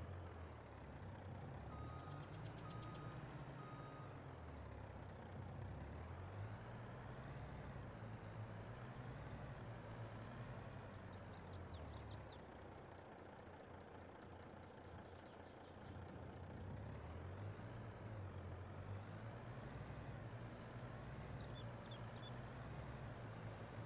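Logs rattle and clank on a trailer.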